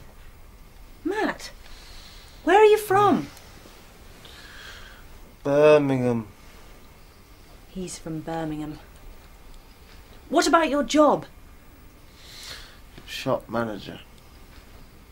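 A young woman speaks nearby in short, lively phrases.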